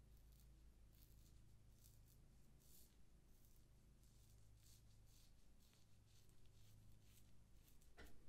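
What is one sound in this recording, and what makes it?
A razor scrapes softly through lathered stubble on a scalp.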